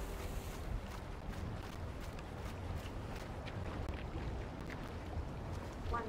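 Water splashes as a man wades through shallow water.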